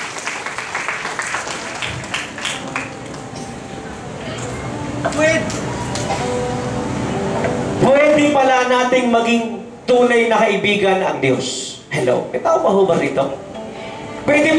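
A man preaches with passion into a microphone, heard through loudspeakers.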